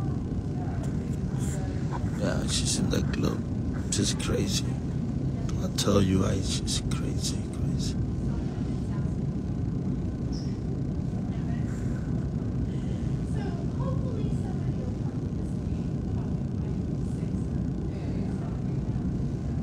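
A man talks calmly close to a phone microphone.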